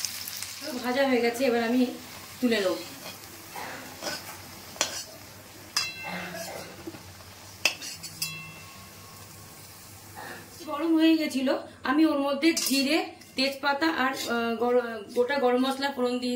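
A metal spatula scrapes against a pan.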